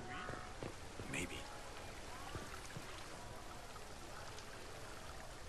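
Footsteps run across cobblestones.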